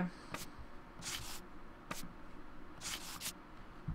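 Paper scraps rustle softly as they are moved into place.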